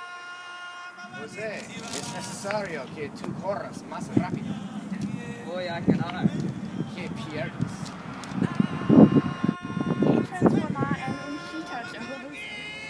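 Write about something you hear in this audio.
Another teenage boy answers calmly outdoors.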